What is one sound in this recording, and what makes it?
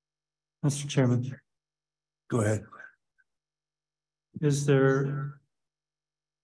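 A man speaks briefly through a microphone in short bursts, heard as if over an online call.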